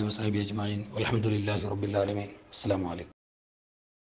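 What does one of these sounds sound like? A man speaks forcefully through a microphone.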